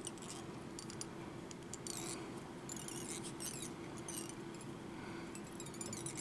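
Fine thread rustles faintly as it is wound around a small hook.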